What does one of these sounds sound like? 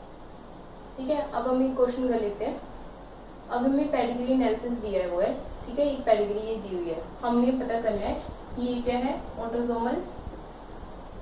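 A young woman explains calmly, close by.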